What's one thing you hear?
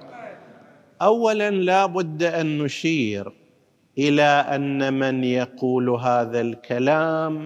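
An elderly man speaks with emphasis into a close microphone.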